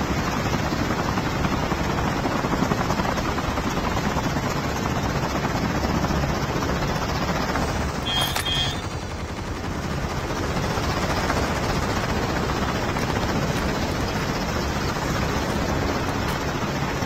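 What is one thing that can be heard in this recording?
A helicopter's rotors thump steadily overhead.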